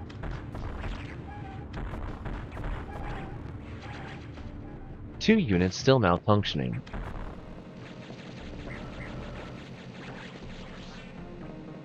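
Electronic game blasts and shots pop and rumble.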